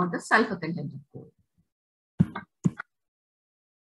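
A young woman speaks calmly through an online call, in short bursts.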